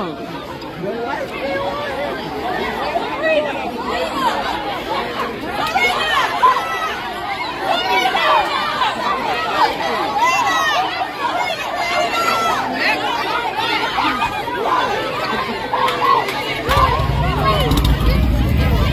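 A crowd of young men and women chatters and shouts nearby.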